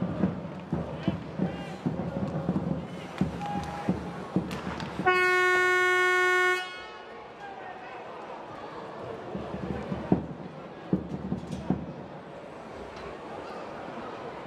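A crowd murmurs in a large echoing arena.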